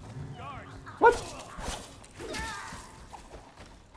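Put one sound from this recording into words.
A sword slashes and strikes a body with sharp thuds.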